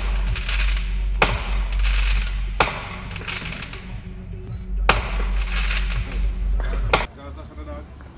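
Fireworks bang and crackle in the distance outdoors.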